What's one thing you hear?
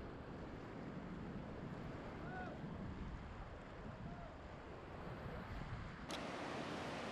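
Waves wash gently over a rocky shore.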